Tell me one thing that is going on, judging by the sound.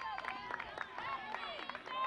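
A softball bat clatters onto the dirt.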